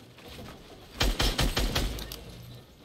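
Shotgun blasts go off in quick succession.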